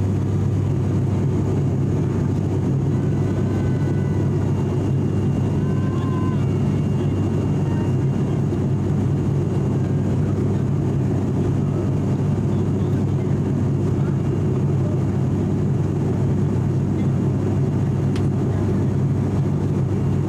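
A propeller aircraft's engines drone loudly and steadily from inside the cabin.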